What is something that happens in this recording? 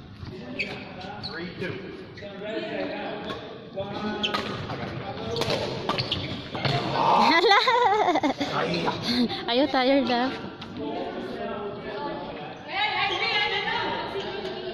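A badminton racket smacks a shuttlecock in sharp hits.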